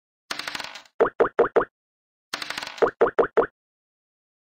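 A game piece hops from square to square with short, bright pops.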